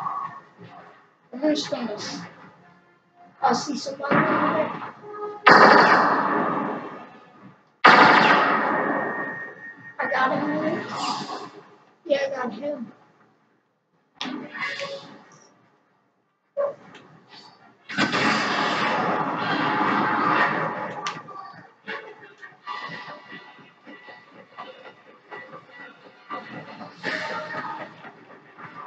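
Video game gunfire bursts loudly from a television's speakers.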